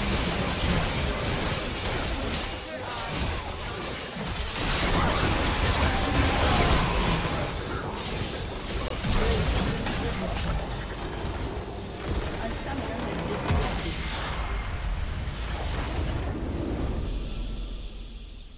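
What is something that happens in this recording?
Game spell effects crash and blast in a busy fight.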